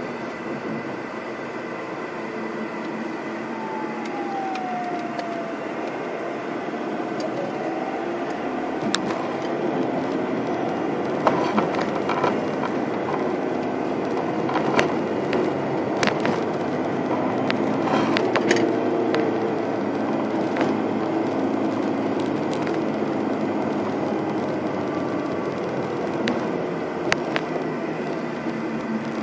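A car engine hums steadily while driving along a road.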